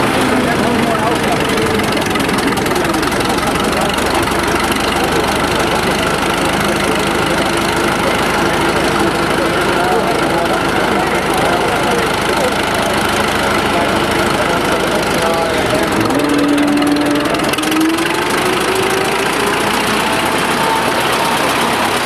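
An old tractor engine runs loudly and steadily.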